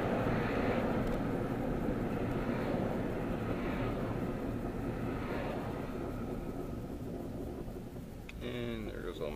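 Road noise fades as the car slows down.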